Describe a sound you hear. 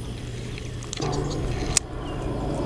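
A fishing reel whirs as line is reeled in.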